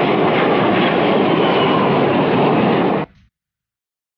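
A monster's claw swipes through the air with a whoosh.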